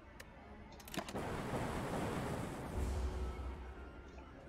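A heavy hit lands with a crashing burst.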